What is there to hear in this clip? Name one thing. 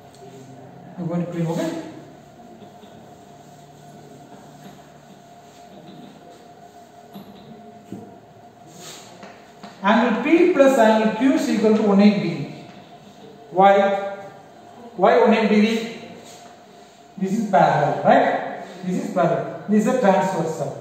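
A man speaks clearly and steadily.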